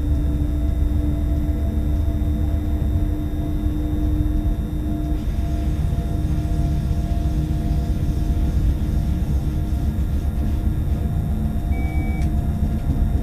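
A train rumbles steadily along the rails with a low drone.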